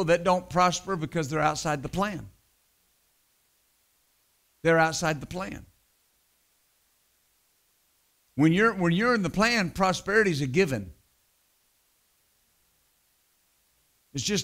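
A middle-aged man speaks calmly and deliberately into a microphone, with long pauses.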